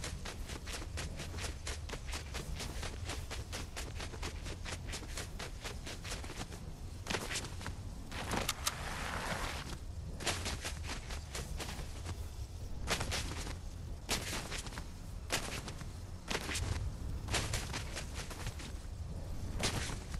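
Quick footsteps crunch through snow.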